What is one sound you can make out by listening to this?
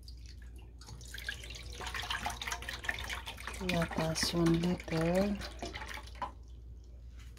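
Milk pours and splashes into a pan.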